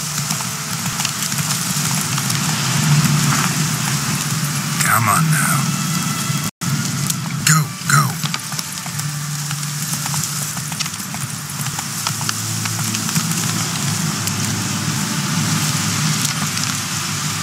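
A horse gallops with steady hoofbeats on a dirt path.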